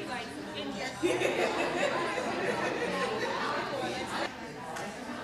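A group of people laughs.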